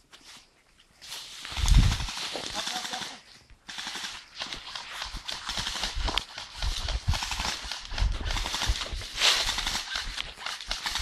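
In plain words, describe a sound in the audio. Footsteps crunch on dry leaves and gravel close by.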